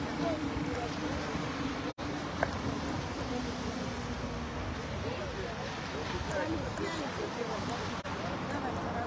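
Elderly women and men chat quietly nearby outdoors.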